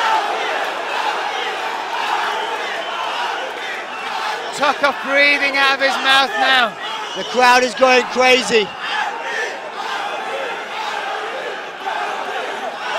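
A large crowd murmurs and cheers in an echoing hall.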